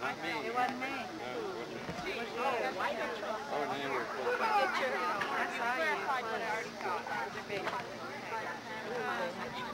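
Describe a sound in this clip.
Several men and women chat and talk over one another outdoors.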